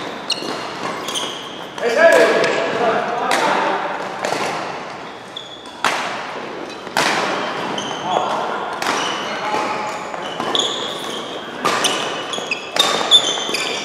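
Badminton rackets smack a shuttlecock back and forth in an echoing hall.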